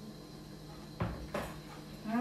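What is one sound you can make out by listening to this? A dish knocks against the sink.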